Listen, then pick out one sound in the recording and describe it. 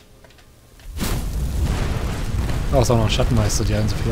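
A fire spell roars and crackles.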